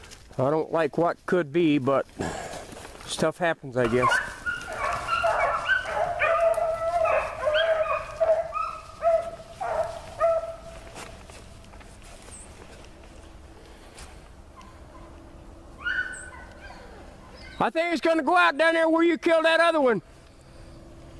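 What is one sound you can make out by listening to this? Hunting dogs bay and yelp loudly nearby.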